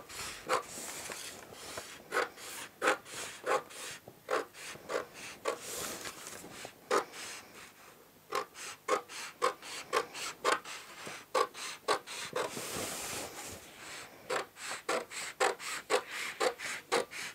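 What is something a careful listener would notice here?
Stiff paper rustles and crinkles.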